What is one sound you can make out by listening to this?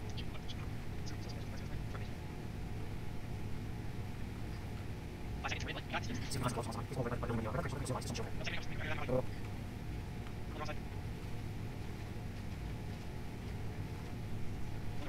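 A boat engine rumbles steadily at speed.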